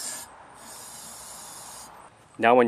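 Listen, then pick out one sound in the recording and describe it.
An aerosol can sprays with a short hiss.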